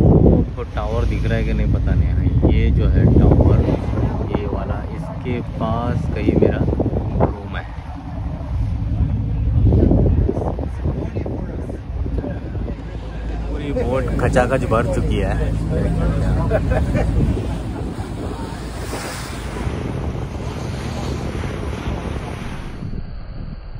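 Wind rumbles across the microphone outdoors on open water.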